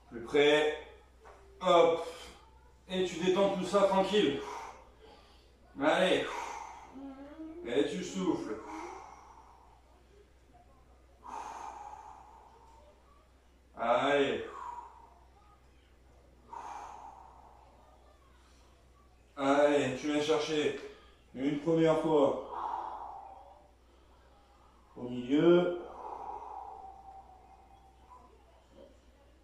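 A young man speaks calmly and slowly in an echoing room, pausing between phrases.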